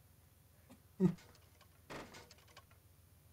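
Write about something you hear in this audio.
A heavy wooden hatch thuds as it is pushed open.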